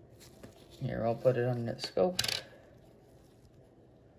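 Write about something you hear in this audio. A coin clicks down onto a glass surface.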